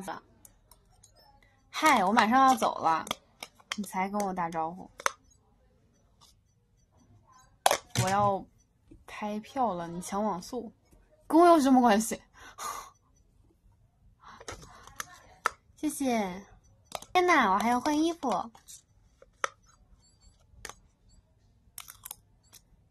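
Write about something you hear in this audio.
A spoon clinks against a plastic cup.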